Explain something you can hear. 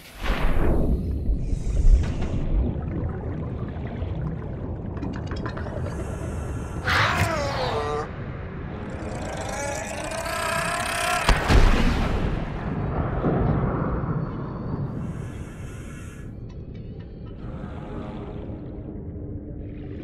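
A low, muffled underwater rumble goes on steadily.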